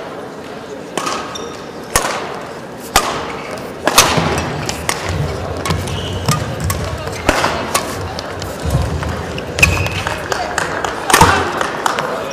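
A badminton racket strikes a shuttlecock with sharp pops back and forth.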